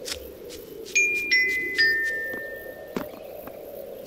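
Bright chiming tones ring out as gems are collected.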